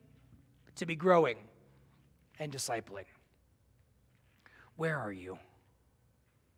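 A man speaks calmly with pauses through a microphone.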